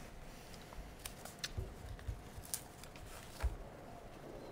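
Papers rustle and knock softly on a table nearby.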